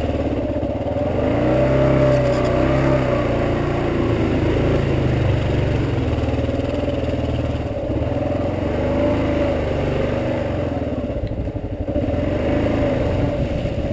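Motorcycle tyres splash through muddy puddles.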